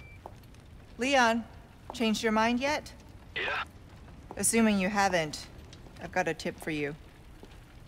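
A young woman speaks calmly into a radio.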